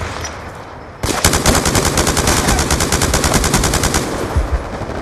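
An automatic rifle fires rapid, loud bursts of gunshots.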